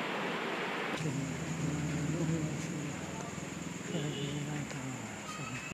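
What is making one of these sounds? A young boy speaks calmly close by.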